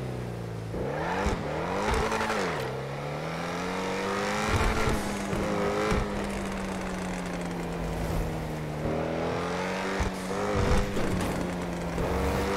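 A sports car engine hums and revs up and down as the car speeds along.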